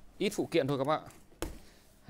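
A utility knife scrapes against cardboard.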